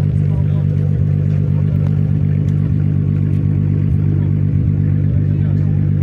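A car engine idles close by with a low, steady rumble.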